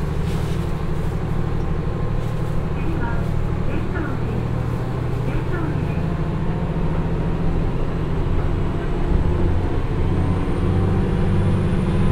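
Train wheels roll and clack over the rails.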